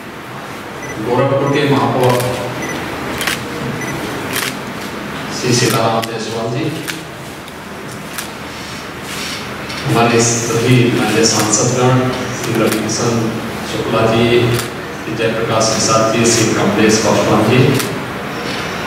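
A man speaks calmly into a microphone, heard through a loudspeaker in an echoing room.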